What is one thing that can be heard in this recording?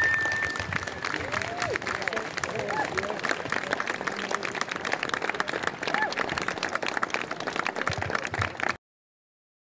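A crowd claps outdoors.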